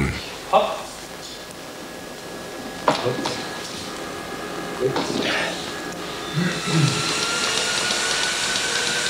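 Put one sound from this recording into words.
A stationary bike's flywheel whirs steadily as someone pedals hard.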